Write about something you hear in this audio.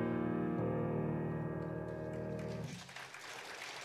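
A piano plays a chord that rings and dies away.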